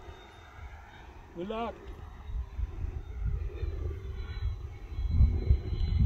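An aircraft drones faintly far overhead.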